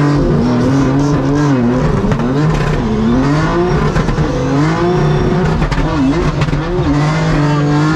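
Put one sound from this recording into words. Tyres screech on the track.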